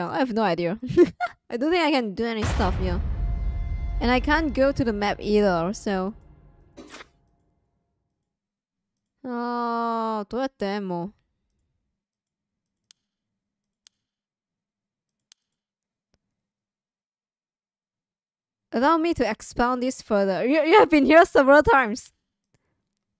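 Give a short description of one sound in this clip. A young woman talks with animation into a microphone, close up.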